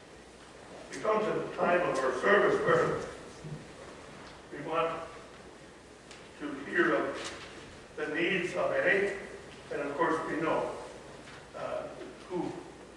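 A middle-aged woman reads out calmly.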